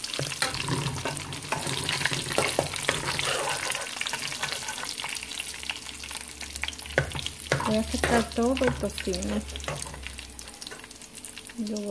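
A metal spoon scrapes against a metal pan.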